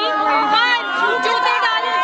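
A young woman shouts loudly nearby.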